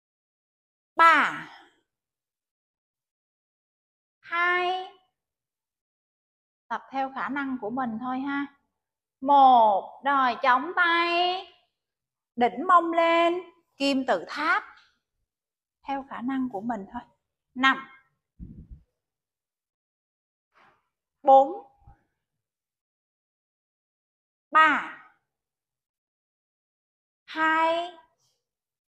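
A woman gives calm spoken instructions in short phrases.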